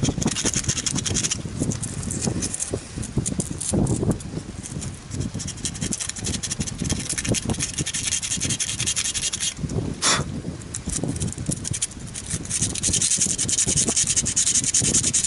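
Small wooden pieces click and tap together as they are fitted by hand.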